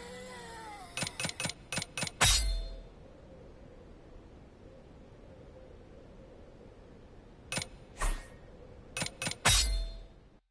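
Short menu clicks tick in quick bursts.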